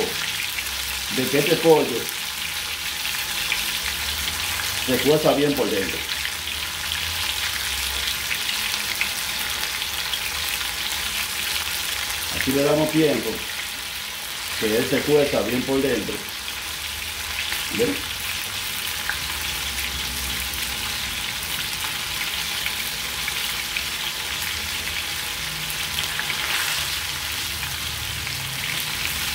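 Soup simmers and bubbles gently in a pot.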